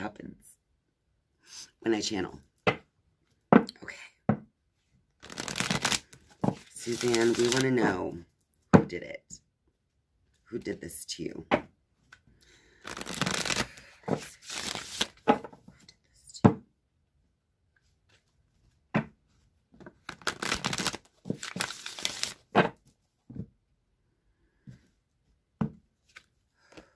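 A woman speaks softly and calmly, close to a microphone.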